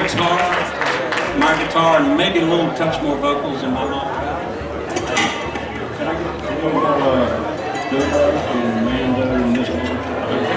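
An acoustic guitar strums steadily.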